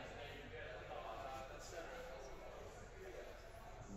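Snooker balls knock together.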